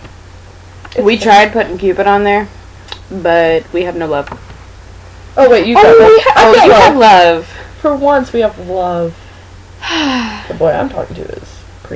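A young woman talks with animation, close by.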